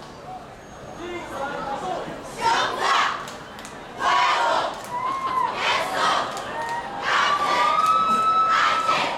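A group of young performers shout and chant loudly in bursts.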